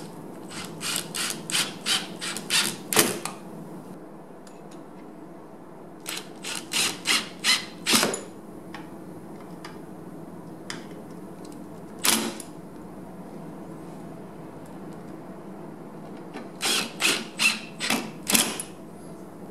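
A hand tool clicks and rattles in short quick bursts against metal.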